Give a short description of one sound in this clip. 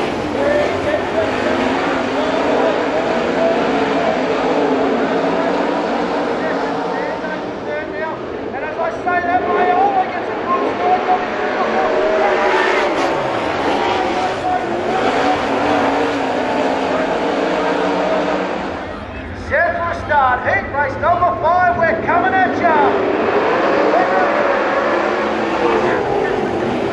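Several racing car engines roar loudly.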